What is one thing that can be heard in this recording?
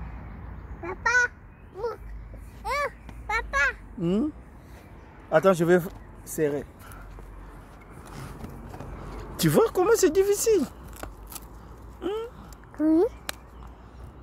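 A young child speaks and calls out in a high voice nearby.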